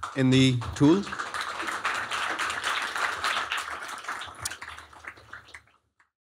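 An audience applauds, and the applause slowly fades away.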